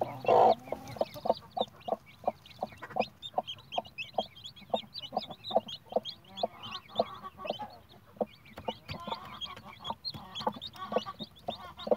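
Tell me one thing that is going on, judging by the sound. A chick peeps rapidly and shrilly close by.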